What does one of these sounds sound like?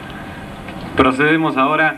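A man speaks into a microphone, heard through loudspeakers outdoors.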